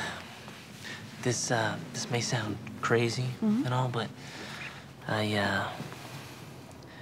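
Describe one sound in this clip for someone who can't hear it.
A young man speaks softly and earnestly up close.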